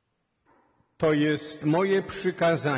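A man chants loudly through a microphone, echoing in a large hall.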